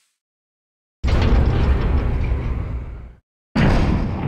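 Heavy metal elevator doors slide open with a loud rumble.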